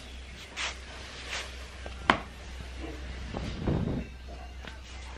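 Cloth rustles and swishes close by.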